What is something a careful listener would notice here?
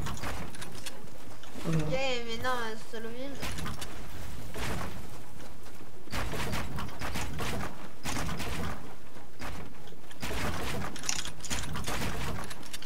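Keyboard keys clatter rapidly.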